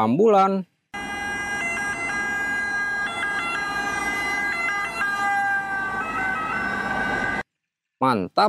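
An ambulance siren wails nearby.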